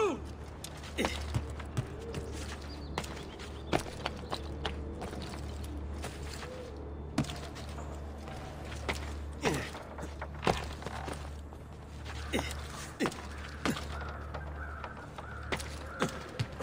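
Footsteps and hand grabs thud sharply as a climber runs and leaps across rooftops.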